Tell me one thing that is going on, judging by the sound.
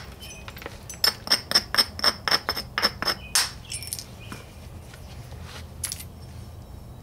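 Small chips of stone tick and snap in quick succession as an edge is pressed off.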